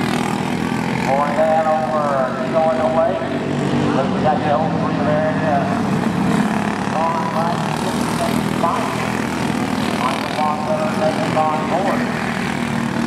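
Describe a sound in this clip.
Kart engines rev up and down as karts race past.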